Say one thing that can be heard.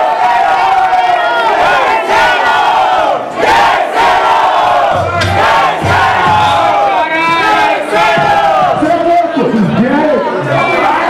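A man raps loudly into a microphone, heard through loudspeakers.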